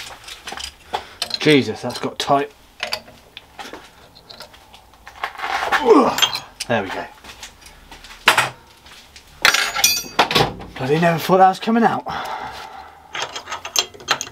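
A chuck key clicks and ratchets in a drill chuck.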